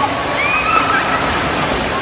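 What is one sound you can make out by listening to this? Water splashes loudly as a woman plunges into a pool.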